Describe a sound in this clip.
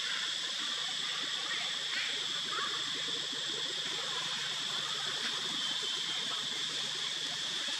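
Leaves and branches rustle softly as a monkey shifts about in a tree.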